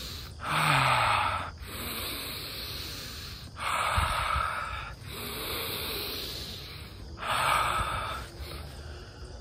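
A young man shouts loudly in long bursts outdoors, close by.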